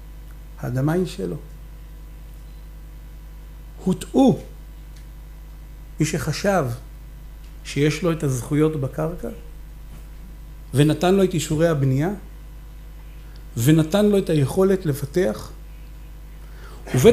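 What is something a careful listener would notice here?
A man speaks calmly into a microphone, in short phrases with pauses.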